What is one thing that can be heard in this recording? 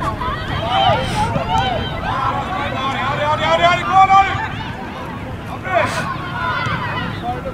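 Young women shout to each other across an open outdoor field.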